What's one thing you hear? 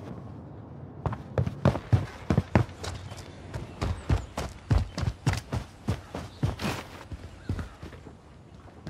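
Quick footsteps thud on the ground and wooden floors.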